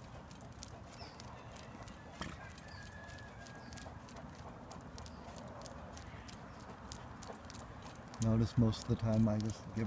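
A dog's claws click on pavement as it walks.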